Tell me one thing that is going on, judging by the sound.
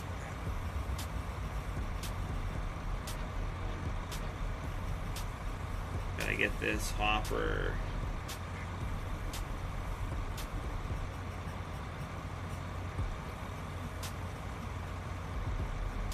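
A tractor engine idles with a low steady rumble.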